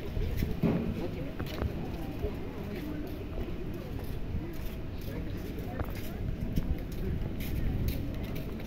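Men and women chat some way off.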